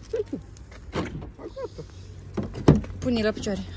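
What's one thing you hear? A car's door locks click open.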